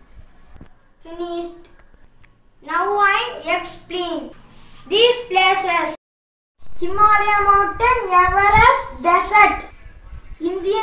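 A young boy speaks clearly and calmly, close by.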